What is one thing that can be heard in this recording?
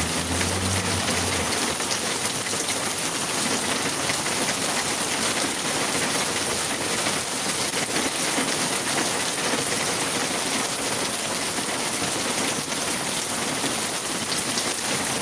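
Steady rain falls on grass outdoors.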